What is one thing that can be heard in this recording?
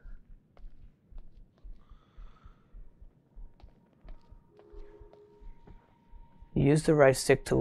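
Footsteps thud slowly and evenly.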